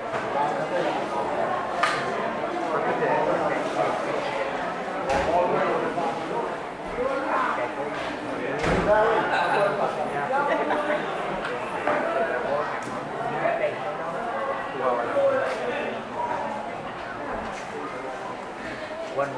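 An elderly man speaks calmly through a microphone in an echoing room.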